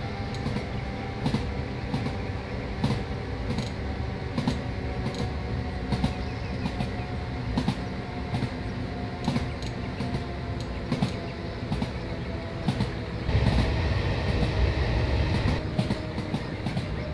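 Train wheels clack over rail joints in a regular rhythm.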